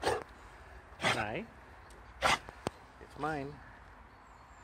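A dog whines close by.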